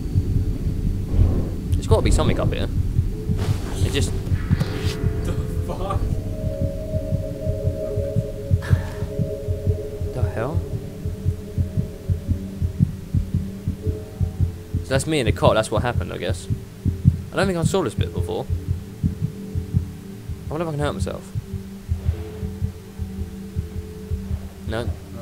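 A young man talks in bursts into a headset microphone.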